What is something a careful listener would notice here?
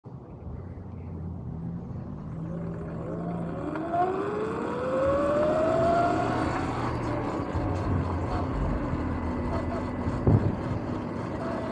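Wind rushes loudly past, growing stronger as the ride speeds up.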